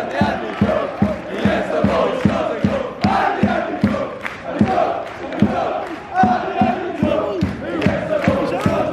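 A crowd of young men sings and chants loudly close by.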